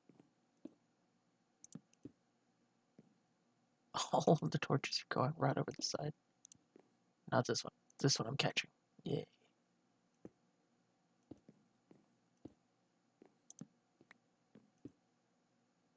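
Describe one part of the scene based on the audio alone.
Stone blocks thud softly as they are placed.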